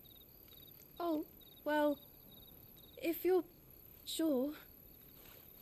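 A young woman answers hesitantly.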